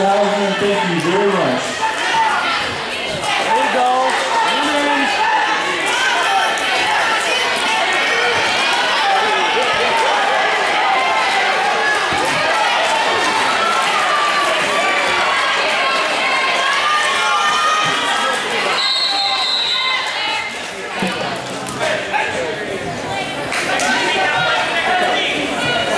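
A crowd of spectators shouts and cheers loudly in an echoing gym.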